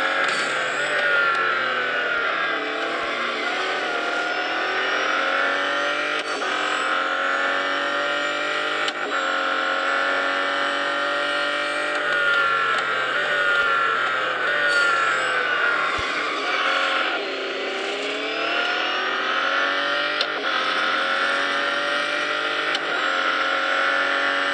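A high-revving car engine roars steadily, rising and falling in pitch as gears shift.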